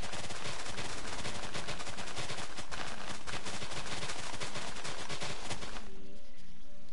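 Dirt crunches repeatedly as it is dug out.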